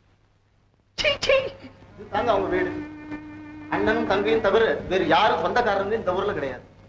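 Several men talk and shout.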